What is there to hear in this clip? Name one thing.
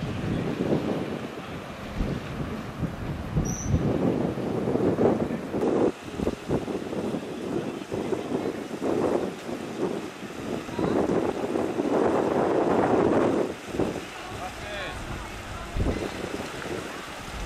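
A truck drives slowly through shallow floodwater, its tyres splashing and swishing.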